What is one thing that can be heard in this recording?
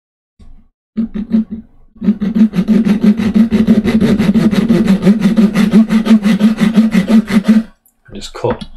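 A metal file rasps rapidly back and forth across wood.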